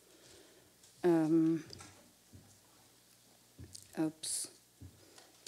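A woman speaks into a microphone in a large hall, reading out in short phrases.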